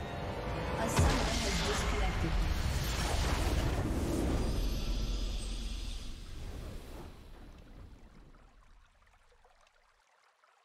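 Triumphant victory music swells and slowly fades away.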